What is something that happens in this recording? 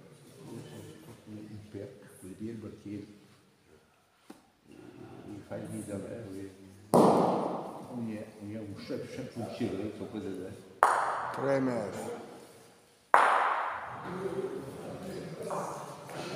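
Elderly men talk casually nearby in an echoing hall.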